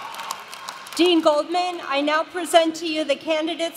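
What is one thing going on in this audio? A woman speaks calmly into a microphone, heard through loudspeakers in a large echoing hall.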